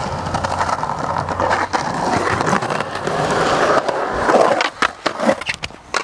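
Skateboard wheels roll and grind loudly on concrete.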